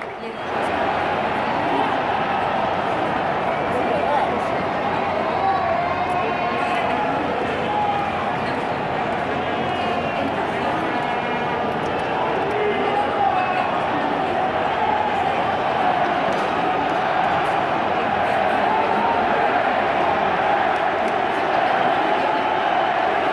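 A large stadium crowd roars and chants steadily all around.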